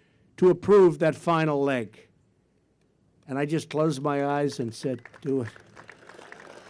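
A man speaks emphatically through a microphone.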